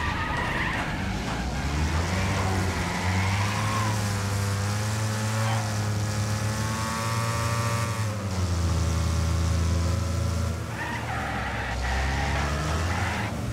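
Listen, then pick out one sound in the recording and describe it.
Cars crash and scrape against each other.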